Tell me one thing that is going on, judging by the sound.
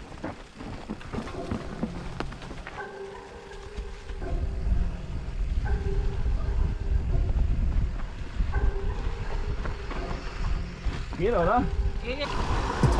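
Bicycle tyres roll and crunch over dry leaves and dirt.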